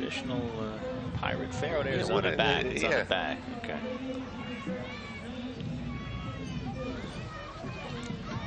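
A crowd of men and women chatters and cheers outdoors.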